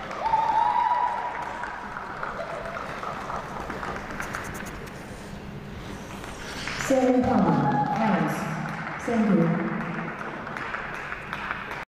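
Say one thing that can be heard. Ice skates glide and scrape across the ice.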